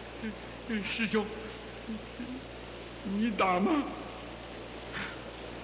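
A man speaks in a low, menacing voice.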